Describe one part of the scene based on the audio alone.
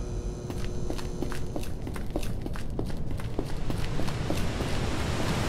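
Footsteps tap steadily on hard ground in a tunnel.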